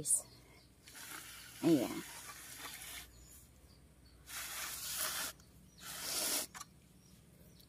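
Fingers rustle through dry mulch and soil.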